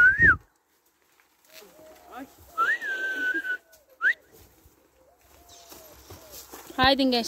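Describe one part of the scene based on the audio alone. An elderly woman calls out to cows in a high voice.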